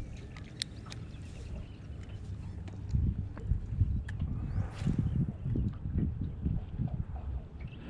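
Wind rumbles across a microphone outdoors.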